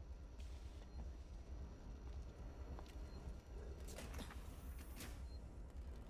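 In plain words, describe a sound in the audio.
A motion tracker gives short high beeps.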